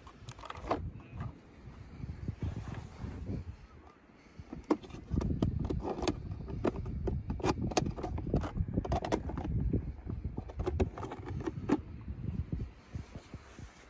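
A hand pushes a plastic toy truck that scrapes over sand and rock.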